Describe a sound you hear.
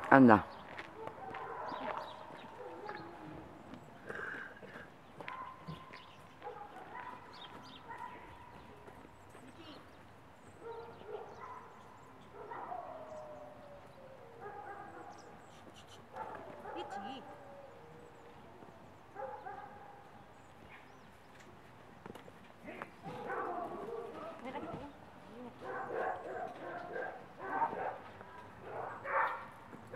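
A woman talks to a dog in a coaxing, encouraging voice nearby.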